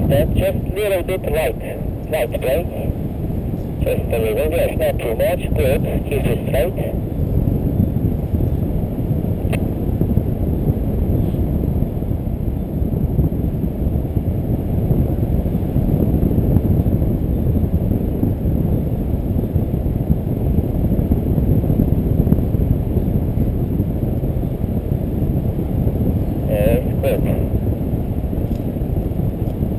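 Strong wind rushes and buffets loudly past close by.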